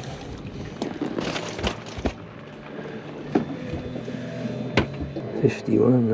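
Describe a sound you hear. A fish flaps and thumps against a boat deck.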